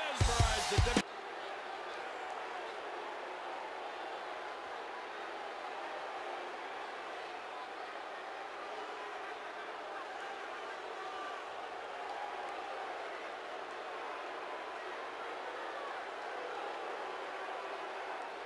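A large crowd murmurs and cheers in a big hall.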